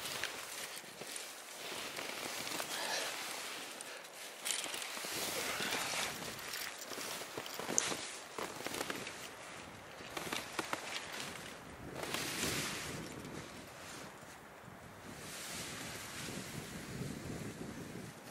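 Boots crunch and plunge through deep snow.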